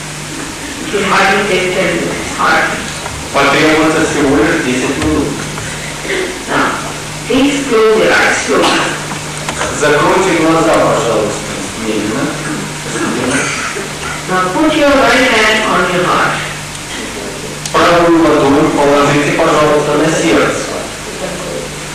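A woman speaks calmly into a microphone, heard through a loudspeaker, with pauses between phrases.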